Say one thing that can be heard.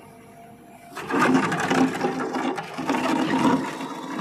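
An excavator bucket scrapes and digs into stony soil.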